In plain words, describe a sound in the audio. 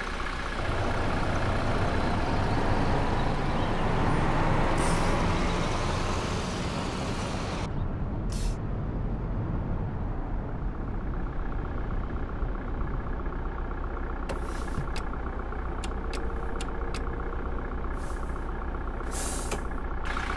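A bus engine hums with a low, steady rumble.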